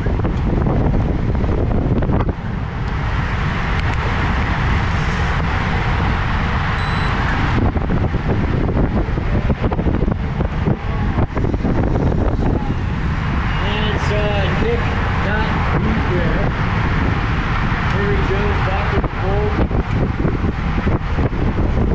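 Bicycle tyres hum on smooth road.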